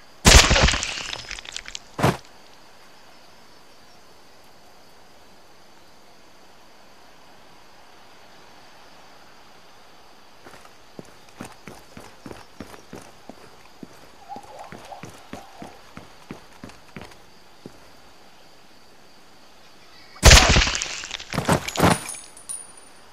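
Gunshots fire in loud, echoing bursts.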